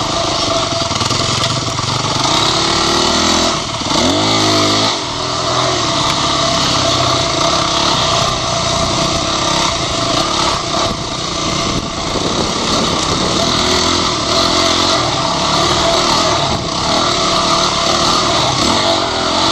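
Another dirt bike engine buzzes a little way ahead.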